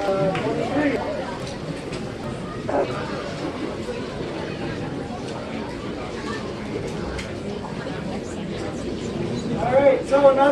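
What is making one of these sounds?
A brass band plays outdoors.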